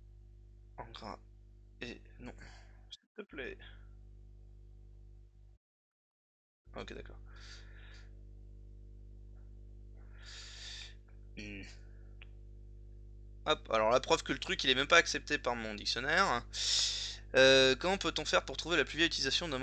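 A man speaks calmly and close up, heard through a microphone, with long pauses and then continuously.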